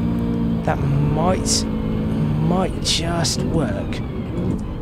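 A racing car engine blips up in pitch with each quick downshift.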